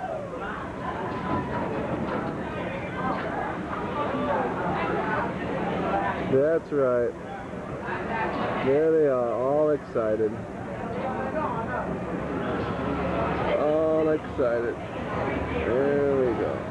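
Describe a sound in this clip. A roller coaster train rumbles along its track.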